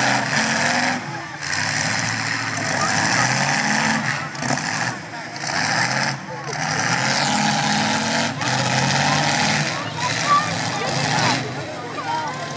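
Car engines roar and rev loudly in an outdoor arena.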